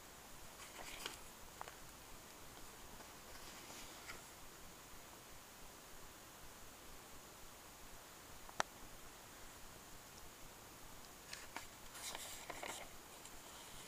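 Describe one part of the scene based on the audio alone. Paper pages of a booklet rustle as they are turned.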